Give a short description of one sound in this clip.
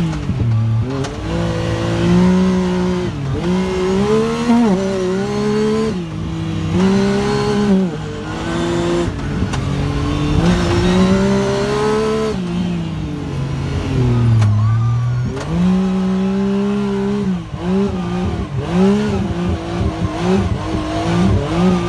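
A vehicle engine hums close by and revs up and down.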